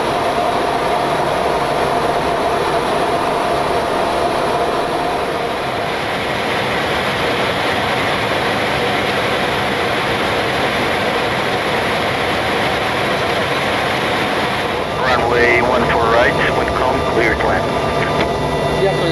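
A steady roar of aircraft engines and rushing air fills the cabin.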